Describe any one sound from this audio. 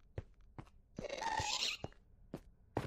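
A ghast screeches.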